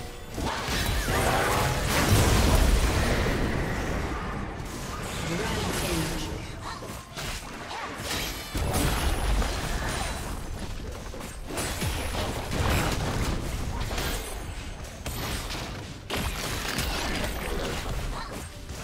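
Spell effects crackle and burst as game characters fight.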